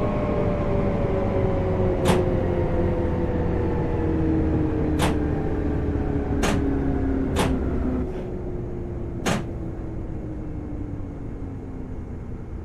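An electric train motor hums and whines, its pitch slowly falling as the train slows.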